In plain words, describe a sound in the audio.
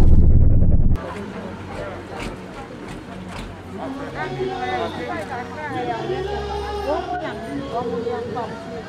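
A crowd of men talk among themselves outdoors.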